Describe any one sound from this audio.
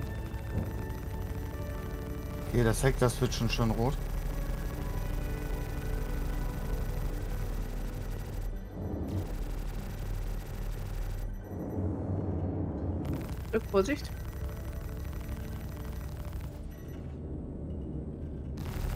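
Spaceship engines hum steadily.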